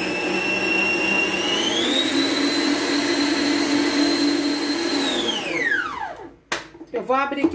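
An electric stand mixer whirs steadily, speeds up, then winds down and stops.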